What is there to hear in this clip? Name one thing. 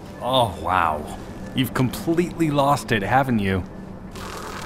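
A young man speaks mockingly, close by.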